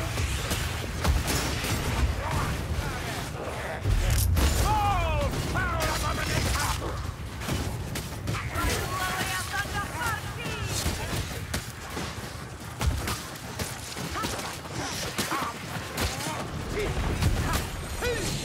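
Monsters snarl and growl.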